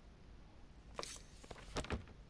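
A paper page rustles and flips.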